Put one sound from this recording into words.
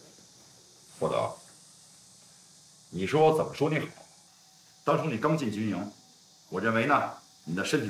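A man speaks calmly and firmly at close range.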